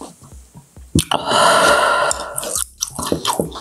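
A young woman lets out a loud cry after drinking.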